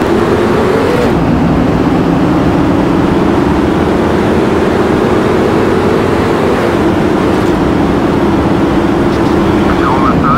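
A car engine's pitch climbs and drops as it shifts gears.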